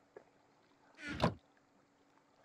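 A wooden chest lid creaks and thuds shut.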